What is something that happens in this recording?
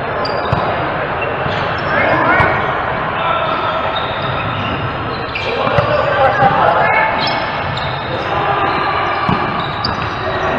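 Several players shout to each other in a large echoing hall.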